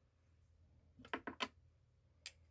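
A woman speaks briefly, close by.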